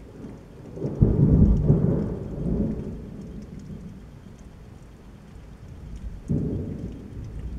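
Thunder rumbles low and deep.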